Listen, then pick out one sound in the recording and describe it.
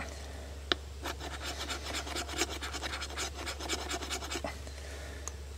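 A knife scrapes steadily against wood.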